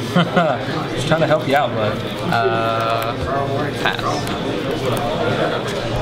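Playing cards riffle and shuffle in hands.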